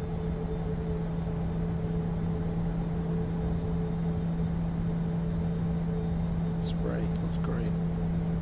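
Rain patters on an aircraft window.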